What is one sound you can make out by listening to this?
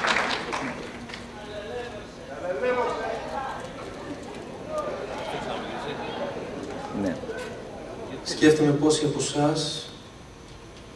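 A young man speaks calmly into a microphone in a large echoing hall.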